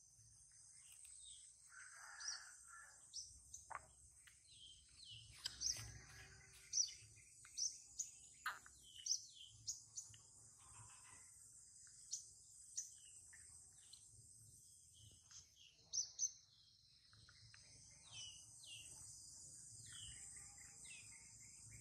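A baby monkey sucks and slurps milk from a bottle.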